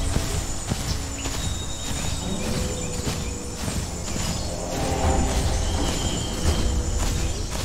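Heavy footsteps thud and rustle through grass.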